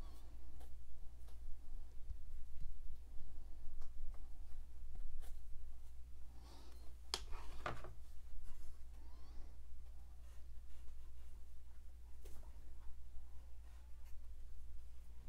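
A paintbrush brushes paint onto canvas.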